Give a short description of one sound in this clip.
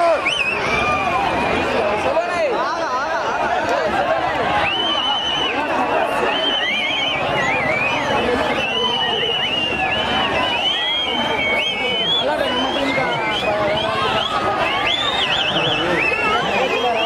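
A crowd of men shouts and cheers excitedly outdoors.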